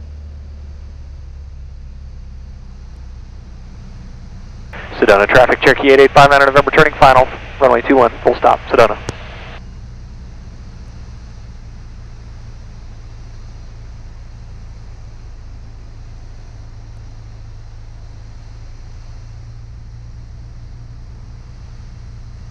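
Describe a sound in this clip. An aircraft engine drones steadily throughout.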